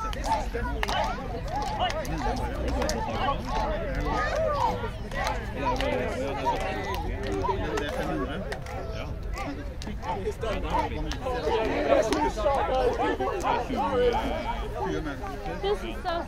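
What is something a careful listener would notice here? A crowd of young people chatter and call out outdoors.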